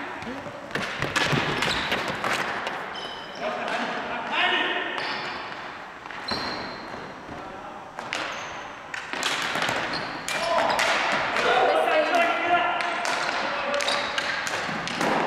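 Ball hockey sticks clack against a ball and each other on a hardwood gym floor.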